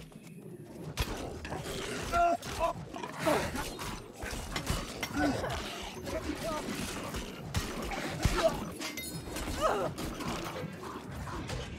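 Weapons clash and spells crackle in quick bursts.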